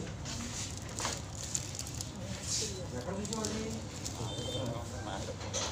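Plastic wrap crinkles as a hand handles a wrapped box.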